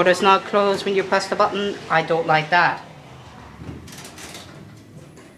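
Lift doors slide shut with a soft thud.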